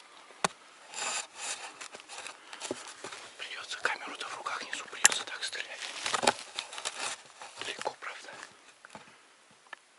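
Snowy branches brush and rustle against clothing.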